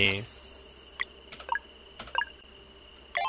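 Short electronic blips sound as menu choices are made.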